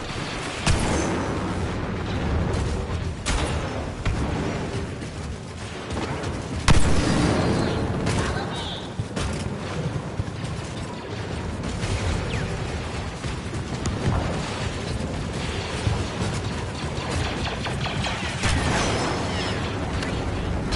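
Metal footsteps clank on a hard floor.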